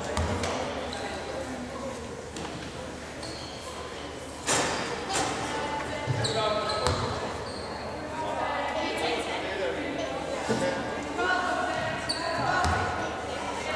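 A basketball bounces on a hard court floor in a large echoing hall.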